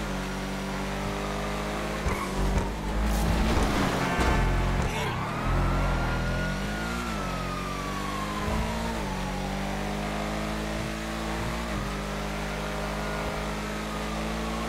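A car engine hums steadily and shifts pitch as a car drives along a road.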